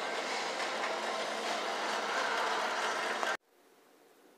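A shopping cart rattles along on a moving walkway.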